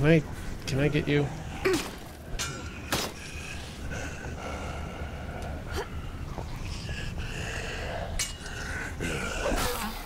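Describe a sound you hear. A chain-link fence rattles and clatters.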